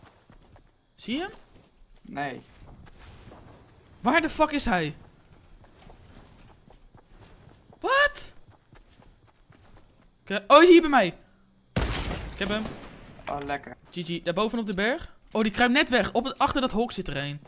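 A young man speaks with animation close to a microphone.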